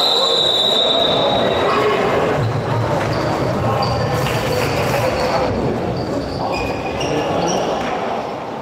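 A crowd of spectators murmurs and chatters nearby in a large echoing hall.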